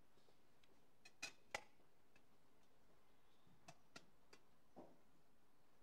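Small metal vessels clink and knock on a table.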